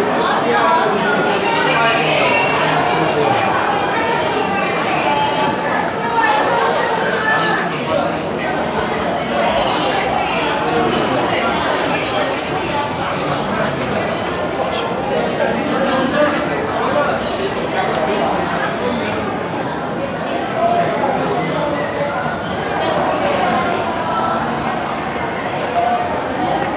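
A crowd of men and women chatters all around in a large echoing hall.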